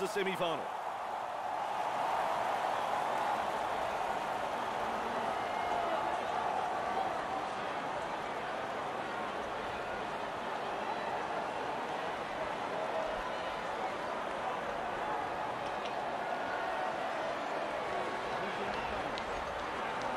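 A large stadium crowd roars and murmurs steadily in the distance.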